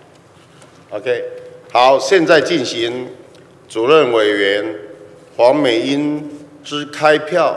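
A middle-aged man speaks formally into a microphone, heard through loudspeakers in a large hall.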